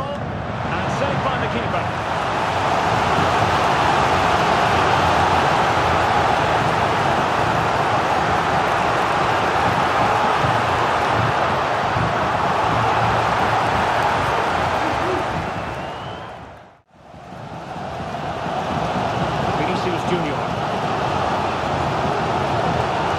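A large crowd roars and chants in a stadium.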